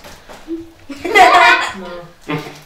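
A boy laughs loudly.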